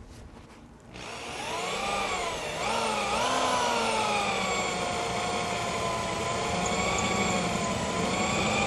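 A power tool whines steadily, its pitch wavering.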